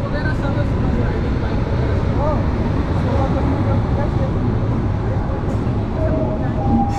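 Wind buffets loudly past the open train door.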